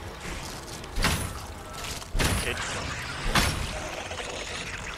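A wooden door is forced and creaks open.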